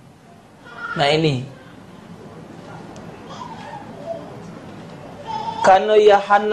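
A middle-aged man speaks through a microphone with a chanting, drawn-out voice over a loudspeaker.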